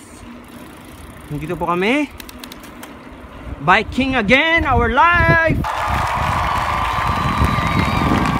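A bicycle rolls along a paved road outdoors.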